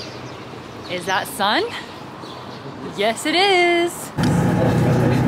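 A young woman laughs close by.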